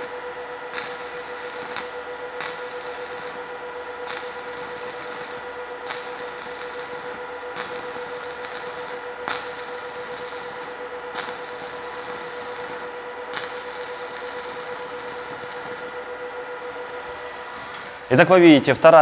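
An electric arc welder crackles and hisses steadily.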